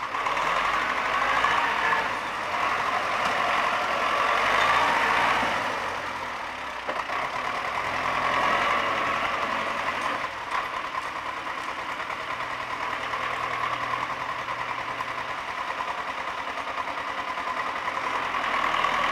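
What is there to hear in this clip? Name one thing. A tractor engine rumbles steadily nearby outdoors.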